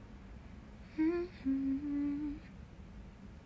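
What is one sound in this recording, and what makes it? A young woman hums a few short notes close to a phone microphone.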